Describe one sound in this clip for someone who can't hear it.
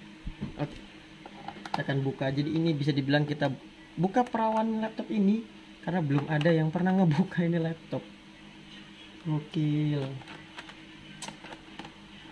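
A small screwdriver clicks and scrapes against screws in plastic.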